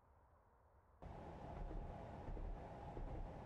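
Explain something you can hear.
A diesel engine rumbles loudly from inside a locomotive cab.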